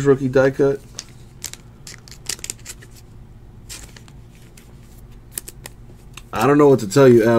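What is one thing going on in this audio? A plastic wrapper crinkles softly as cards are handled.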